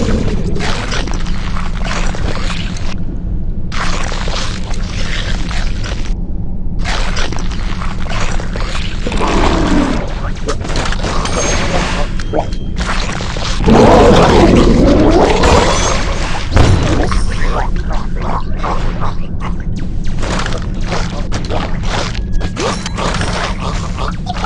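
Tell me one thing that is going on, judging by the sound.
Cartoonish crunching and chomping sounds come from a game as a shark bites its prey.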